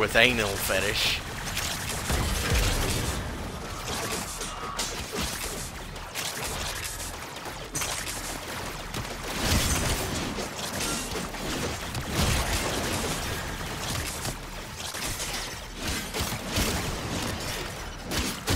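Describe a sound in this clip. Guns fire in rapid bursts with loud impacts.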